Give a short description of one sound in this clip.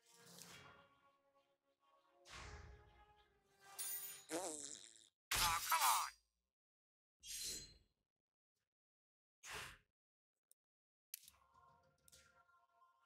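Game sound effects whoosh and chime in short bursts.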